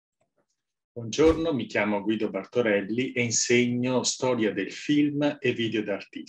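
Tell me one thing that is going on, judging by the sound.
A middle-aged man speaks calmly and warmly, close to a microphone.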